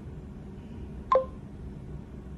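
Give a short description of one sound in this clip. An electronic device gives a short chime.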